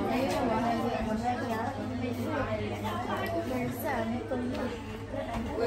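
Many young girls chatter and talk at once nearby in a busy room.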